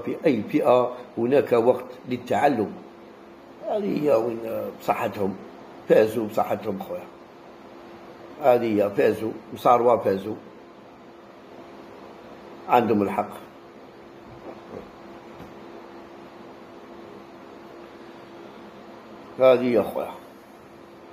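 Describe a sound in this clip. A middle-aged man speaks close to the microphone with pauses between phrases.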